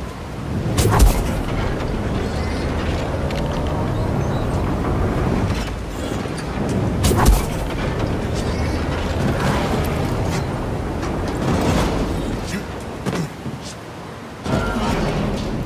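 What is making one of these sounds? A heavy thud sounds as someone lands from a jump.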